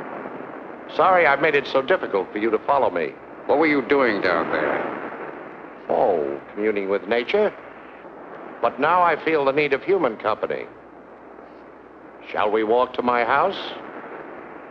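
Two men talk quietly outdoors.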